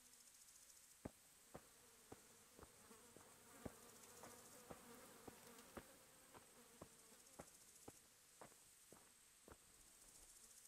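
Footsteps fall on hard ground.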